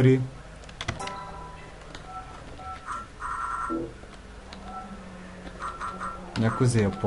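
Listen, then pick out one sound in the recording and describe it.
Short electronic menu beeps sound several times.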